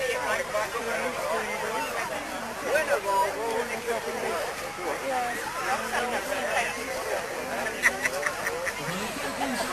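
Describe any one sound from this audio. A large crowd of people chatters outdoors.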